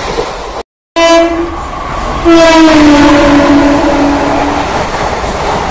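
A locomotive horn blares loudly and then fades.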